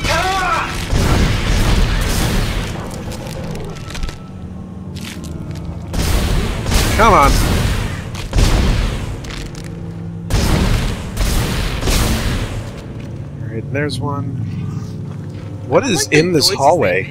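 A gun fires in bursts of sharp blasts.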